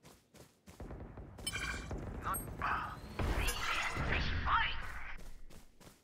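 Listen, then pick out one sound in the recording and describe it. A magical ability whooshes and crackles as a hand casts it.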